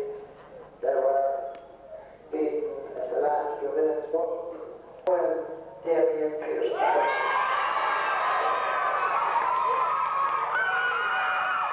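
An elderly man speaks through a microphone and loudspeaker.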